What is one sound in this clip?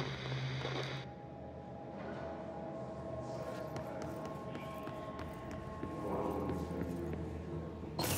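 Footsteps tap on a hard floor in a large echoing hall.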